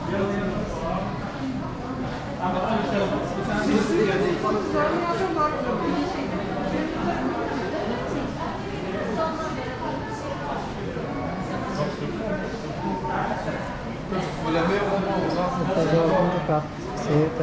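Adult men and women chatter nearby in an echoing room.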